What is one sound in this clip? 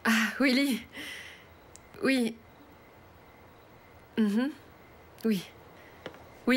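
A young woman talks on a phone in short, cheerful bursts, close by.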